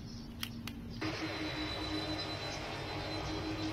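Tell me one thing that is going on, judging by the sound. Jet engines roar with a rushing noise.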